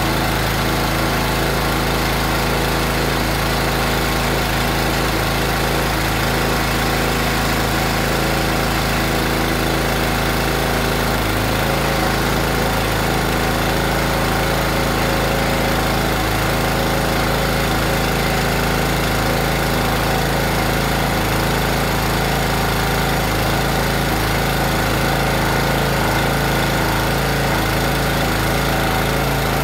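A small petrol engine runs loudly and steadily close by.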